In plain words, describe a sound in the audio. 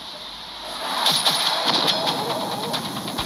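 A laser beam buzzes loudly.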